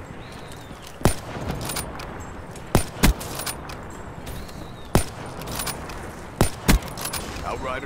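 A rifle fires loud, sharp shots several times.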